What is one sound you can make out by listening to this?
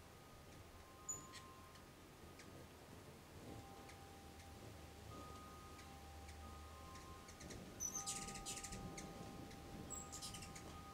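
Hummingbird wings hum as the birds hover.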